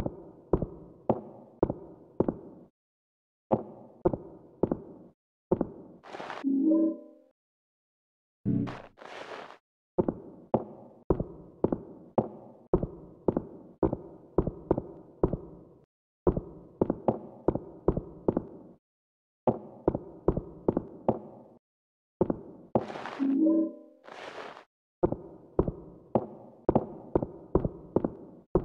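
Footsteps thud steadily on a hollow wooden floor.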